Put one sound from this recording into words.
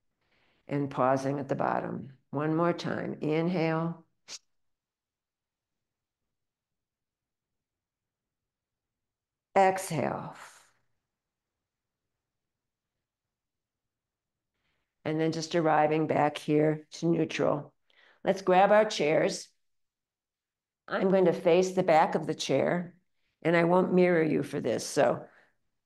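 An elderly woman speaks calmly and clearly, close to a microphone, with pauses.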